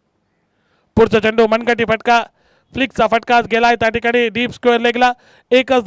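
A man commentates with animation through a microphone.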